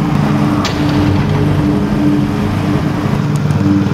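Car tyres roll over a dirt road.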